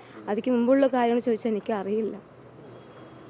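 A young woman speaks earnestly into microphones close by.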